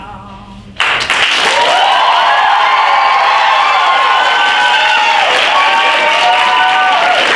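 Young people whoop and scream with excitement.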